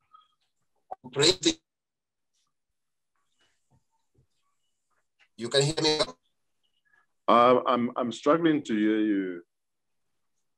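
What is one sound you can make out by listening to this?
An older man speaks haltingly over an online call.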